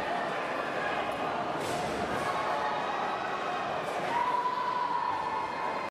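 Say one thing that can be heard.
A large crowd murmurs and chatters throughout a big echoing hall.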